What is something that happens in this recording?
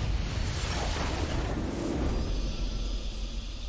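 A triumphant game victory fanfare plays.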